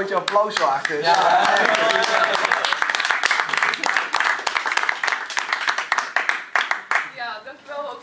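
A small group applauds and cheers.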